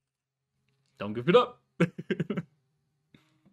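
A man laughs over a microphone.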